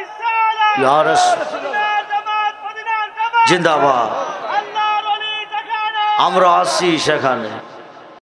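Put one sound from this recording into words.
A middle-aged man preaches forcefully into a microphone, his voice loud through a loudspeaker.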